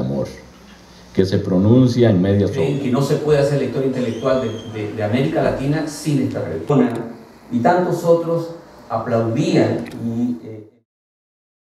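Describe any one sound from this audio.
A man speaks into a microphone over a hall's loudspeakers in a calm, formal voice.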